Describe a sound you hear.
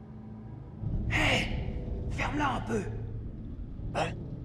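A second young man calls out with animation.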